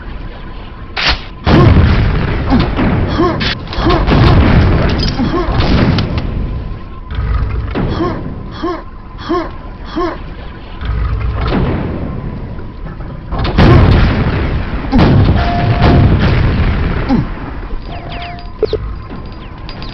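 Heavy gunfire and explosions boom in bursts.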